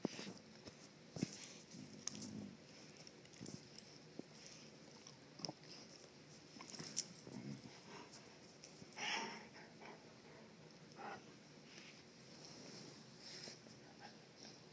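Dogs' collars and paws rustle and knock now and then.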